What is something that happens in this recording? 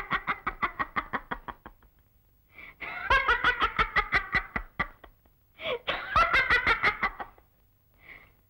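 A young woman laughs loudly in bursts.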